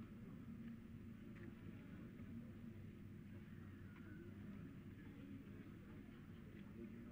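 A group of men murmur in the distance outdoors.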